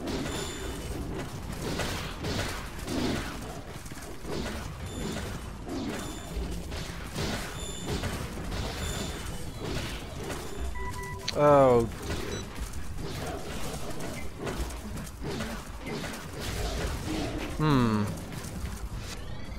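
Big cats growl and snarl as they fight.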